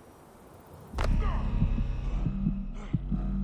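A body lands heavily on the ground with a thud.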